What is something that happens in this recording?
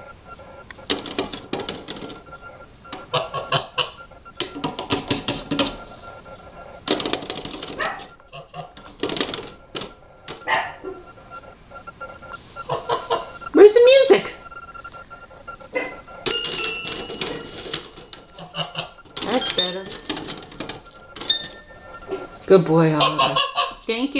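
A goose pecks at toy piano keys, plinking out quick, uneven notes.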